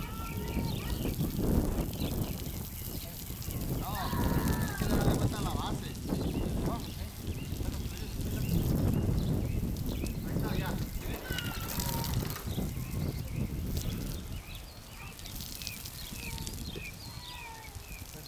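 Sprinklers hiss as they spray water.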